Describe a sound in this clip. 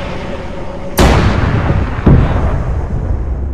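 A heavy gun fires with sharp blasts.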